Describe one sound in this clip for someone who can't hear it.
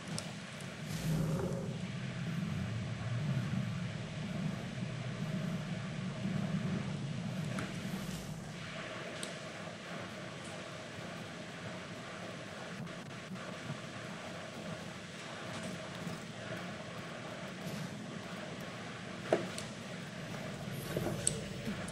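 Wind blows steadily through a snowy forest.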